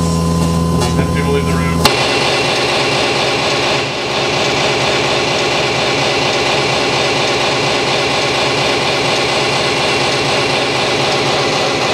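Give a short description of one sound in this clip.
Loud, harsh electronic noise music drones and buzzes through a room.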